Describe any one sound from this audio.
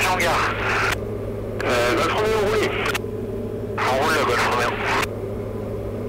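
A man talks calmly over a headset intercom.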